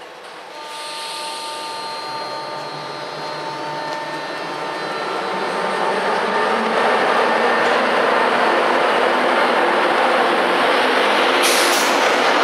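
An electric locomotive hums loudly as it approaches.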